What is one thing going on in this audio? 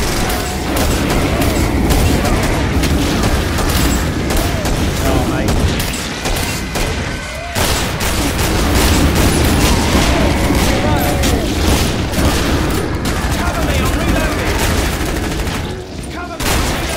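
Monsters groan and snarl.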